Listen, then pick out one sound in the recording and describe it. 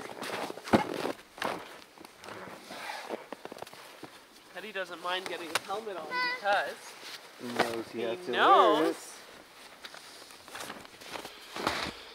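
Gear clatters and rustles on a sled.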